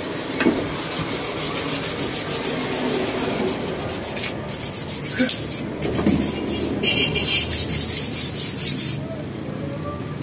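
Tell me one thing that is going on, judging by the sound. Sandpaper scrapes over rattan.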